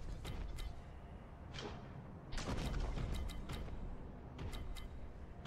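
A gun fires in sharp repeated shots.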